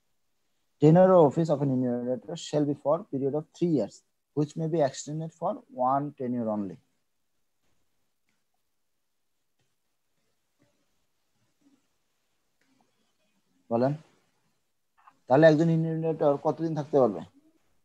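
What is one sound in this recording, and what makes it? A man speaks calmly and steadily into a close microphone, with pauses.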